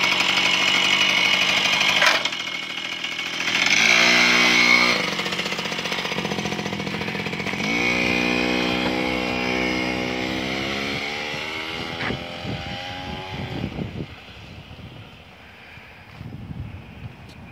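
A small moped engine buzzes and revs, then fades as the moped rides away.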